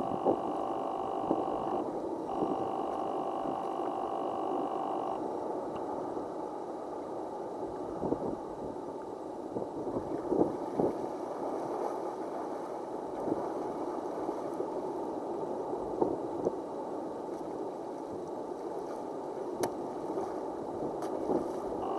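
Water laps and gurgles steadily over rocks outdoors.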